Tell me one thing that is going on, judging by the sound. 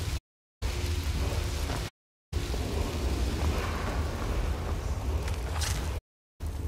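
A magic spell hums and crackles steadily.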